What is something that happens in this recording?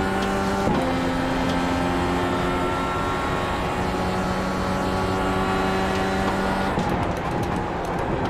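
A racing car engine roars at high revs, shifting gears.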